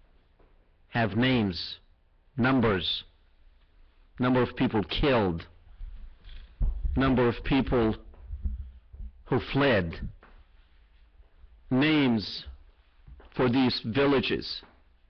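A middle-aged man speaks into a microphone with emphasis, in short bursts with pauses.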